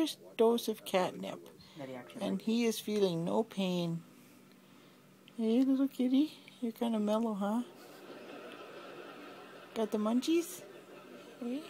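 A woman speaks softly and affectionately close by.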